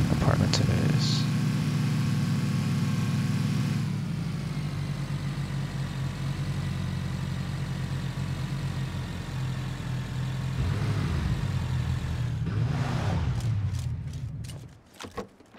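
A jeep engine rumbles steadily as it drives over rough ground.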